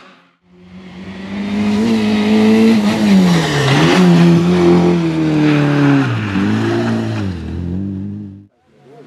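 A small rally car engine screams as it speeds past.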